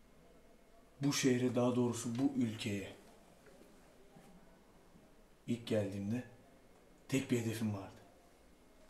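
A young man speaks calmly and close by, in short phrases.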